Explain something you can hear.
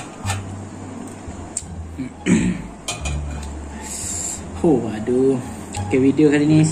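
A metal spoon clinks against a metal tray.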